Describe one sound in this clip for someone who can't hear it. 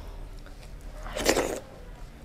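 A woman chews and smacks her lips loudly, very close.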